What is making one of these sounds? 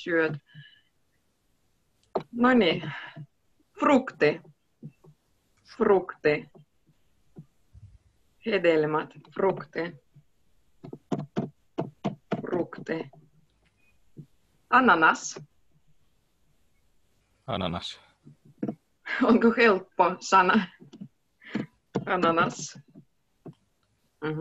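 A young woman speaks calmly and clearly through an online call, pausing between phrases.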